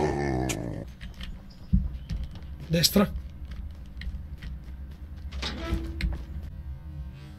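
Computer keys click rapidly.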